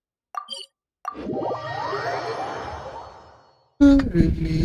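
A shimmering magical whoosh swells and slowly fades.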